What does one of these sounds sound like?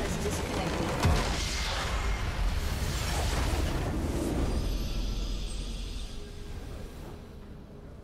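A large structure explodes with a deep rumbling blast.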